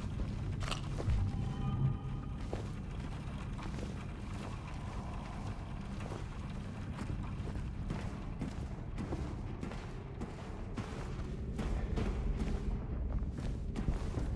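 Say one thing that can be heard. Footsteps thud slowly on a hard floor.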